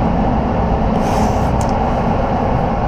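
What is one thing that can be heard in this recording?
Masking tape rips as it is pulled off a roll.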